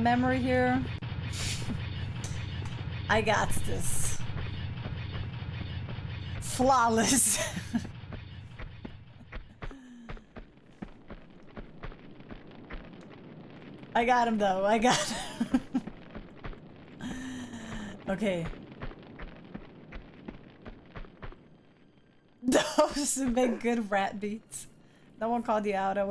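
A young woman talks and laughs with animation into a microphone.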